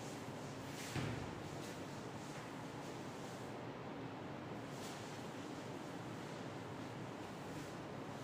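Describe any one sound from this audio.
A man wipes a chalkboard with a cloth duster, rubbing softly.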